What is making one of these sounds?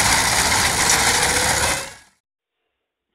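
A horse-drawn reaping machine clatters and rattles through the crop.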